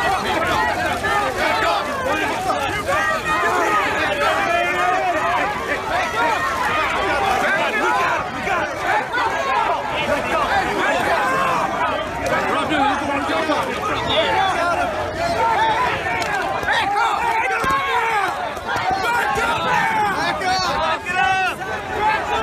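A crowd of men and women shout and yell all around, up close.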